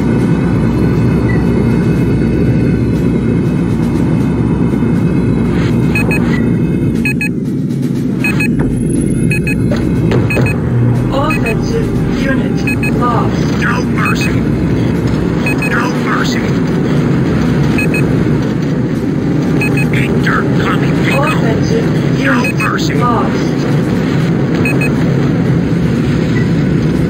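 A vehicle's engine roars steadily throughout.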